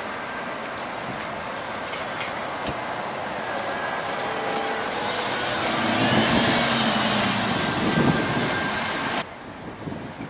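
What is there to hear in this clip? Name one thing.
A bus engine hums and grows louder as the bus drives past close by.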